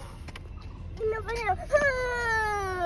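A young child talks close by in a high voice.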